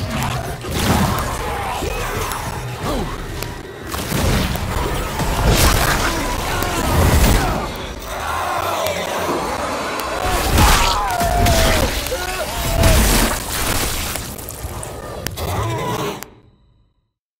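Monstrous creatures snarl and shriek close by.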